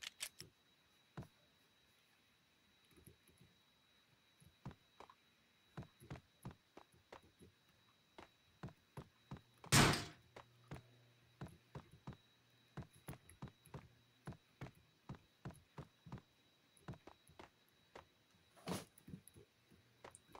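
Footsteps tap steadily on hollow walkways.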